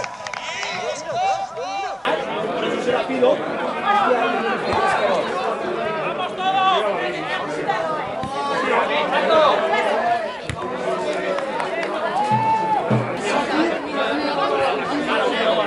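Men shout and call out to each other across an outdoor sports pitch.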